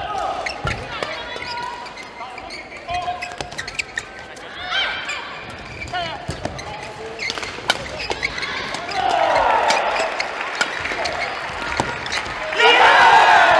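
Shuttlecocks are struck sharply with rackets in a quick rally.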